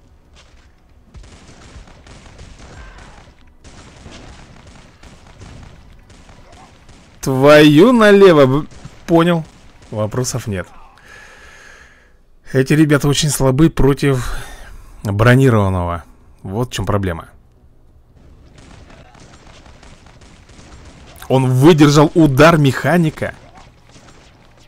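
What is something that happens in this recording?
Small explosions and gunshots crackle faintly in a video game battle.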